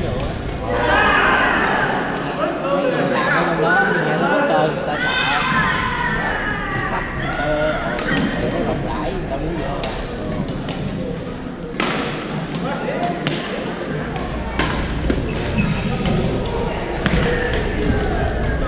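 Shuttlecocks are hit sharply with rackets in a large echoing hall.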